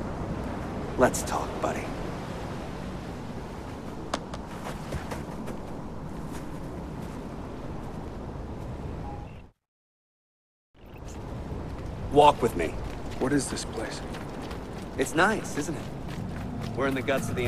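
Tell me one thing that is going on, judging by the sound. A young man speaks casually, close by.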